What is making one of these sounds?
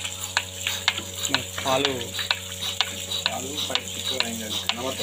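A milking machine motor hums steadily.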